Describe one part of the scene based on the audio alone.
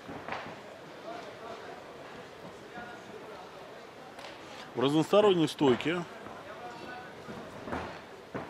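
A crowd murmurs in a large hall.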